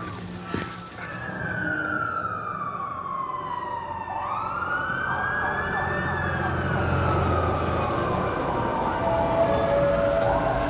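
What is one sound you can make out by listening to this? Police sirens wail in the distance.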